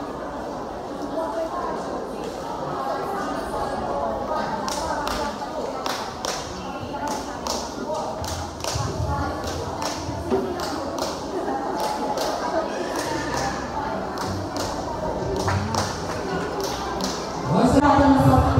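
Dancers' bare feet shuffle and stamp on a hard floor.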